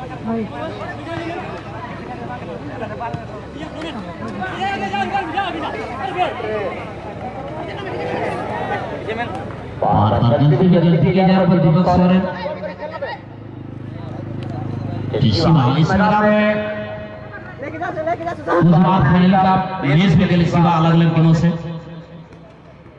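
A crowd of spectators chatters and calls out outdoors.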